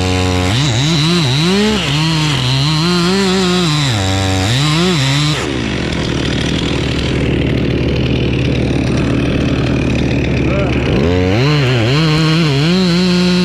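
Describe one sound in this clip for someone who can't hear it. A chainsaw engine revs up and down loudly.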